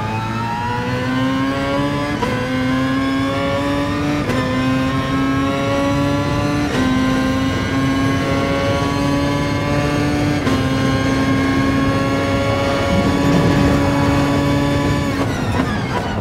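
A racing car engine revs high, rising in pitch through each gear and dropping with each shift.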